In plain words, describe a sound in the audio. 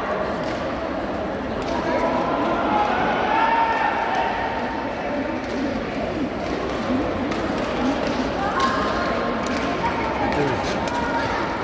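Shuttlecocks are struck with rackets in quick sharp taps.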